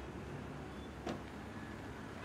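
A car door slams shut.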